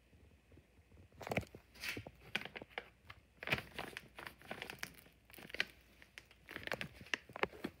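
A plastic pouch crinkles in a hand.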